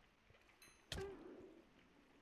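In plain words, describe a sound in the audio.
A sword strikes a creature with a sharp thwack.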